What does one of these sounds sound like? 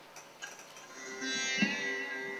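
A bowed string instrument begins to play a tune.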